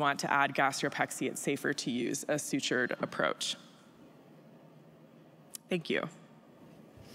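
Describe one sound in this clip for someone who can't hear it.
A woman speaks calmly into a microphone.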